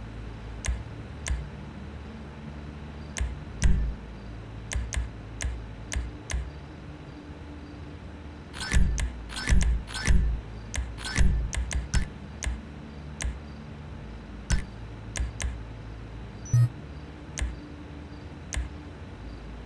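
Menu clicks tick again and again as options are scrolled and picked.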